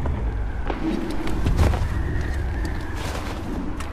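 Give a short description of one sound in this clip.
Wind howls through snow.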